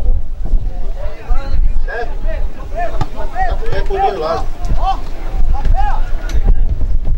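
Young men call out to each other across an open field.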